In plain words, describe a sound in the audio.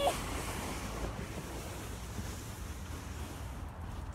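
A sled slides across crusty snow.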